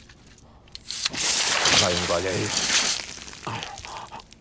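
A drink can bursts open and fizzes loudly.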